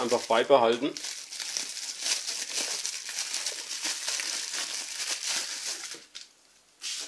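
Plastic bubble wrap crinkles and rustles as it is unwrapped.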